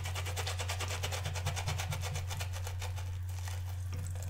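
A brush scrubs rapidly against a soft silicone pad.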